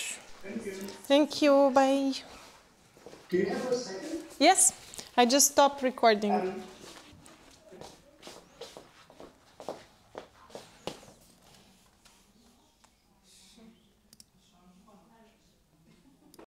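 Footsteps tap and shuffle on a hard floor.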